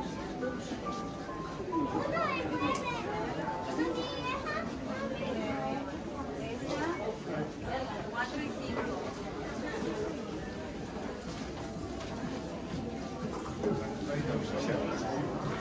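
A crowd of shoppers chatters all around indoors.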